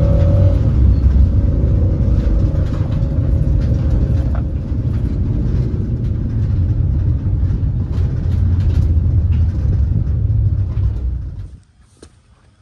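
A car engine rumbles steadily from inside the car as it drives along a road.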